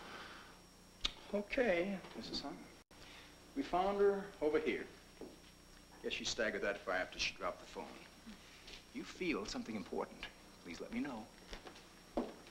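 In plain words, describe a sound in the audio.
A man talks calmly up close.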